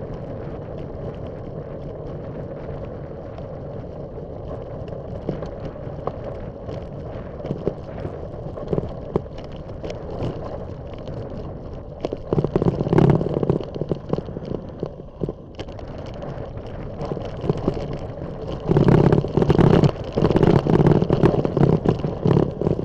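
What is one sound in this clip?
Tyres crunch and rattle over a gravel track.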